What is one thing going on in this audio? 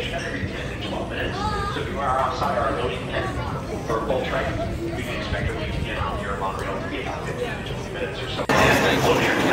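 A crowd chatters nearby in an open, echoing space.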